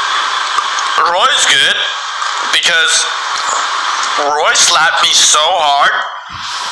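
A young man speaks weakly and slowly up close.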